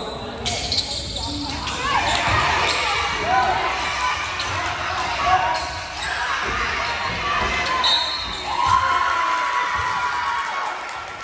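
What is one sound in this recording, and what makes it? Young players shout and call out across an echoing gym.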